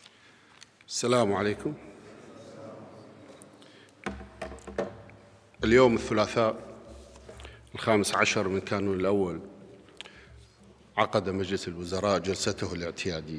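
A man speaks formally into a microphone over loudspeakers in a large echoing hall.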